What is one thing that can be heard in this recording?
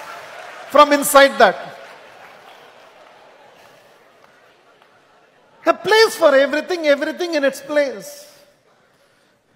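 A middle-aged man speaks with animation through a microphone in a large echoing hall.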